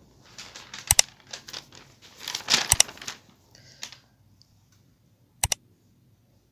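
A mouse button clicks a few times.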